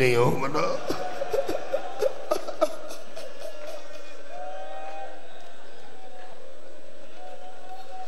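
A middle-aged man sobs into a microphone.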